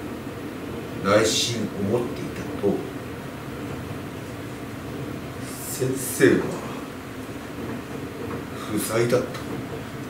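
A man speaks slowly in short, separate bursts.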